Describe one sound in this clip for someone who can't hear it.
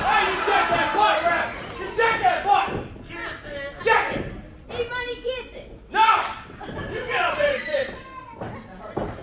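A young man shouts loudly at close range.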